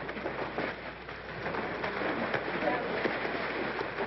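People splash loudly in water.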